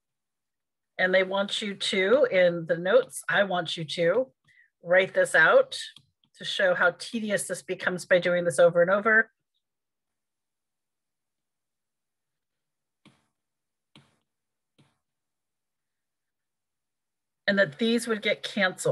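A woman speaks calmly and explains into a close microphone, with pauses.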